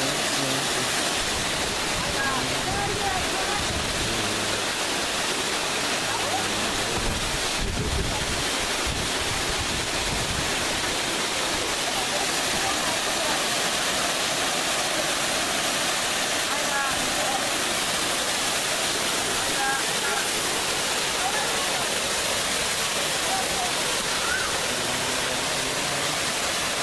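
A waterfall roars loudly and steadily close by.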